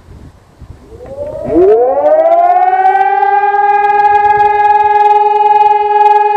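A siren winds up from a low moan to a loud, steady wail close by.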